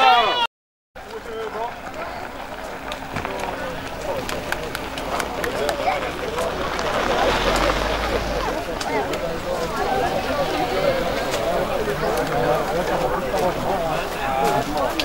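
A crowd of men, women and children chatter outdoors.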